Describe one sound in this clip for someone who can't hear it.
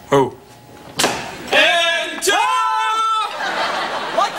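A woman shouts loudly and with excitement.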